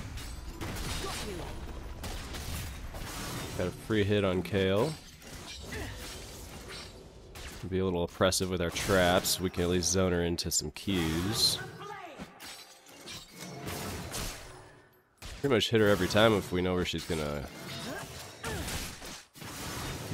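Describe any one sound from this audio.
Magic blasts and sword hits crackle and thud in a fast fight.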